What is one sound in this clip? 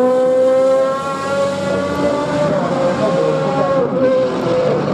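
A GT race car accelerates away out of a corner.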